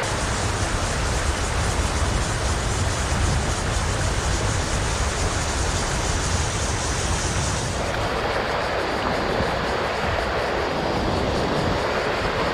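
A river rushes steadily over stones outdoors.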